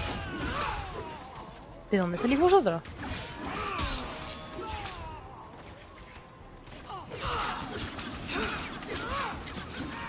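A magic blast bursts with a crackling whoosh.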